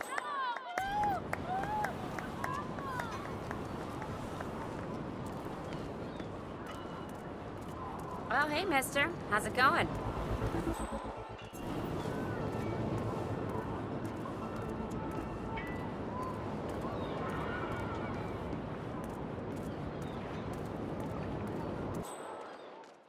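Footsteps tap steadily on stone paving.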